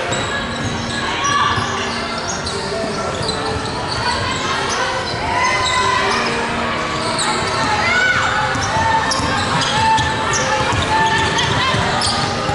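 A basketball bounces on a wooden floor, echoing around a large hall.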